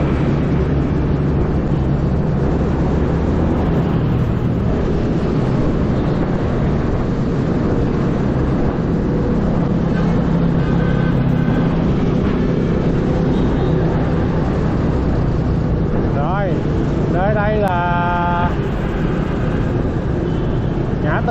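Wind buffets the rider outdoors.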